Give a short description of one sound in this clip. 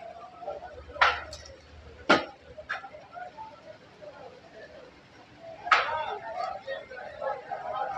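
Meat sizzles over hot coals.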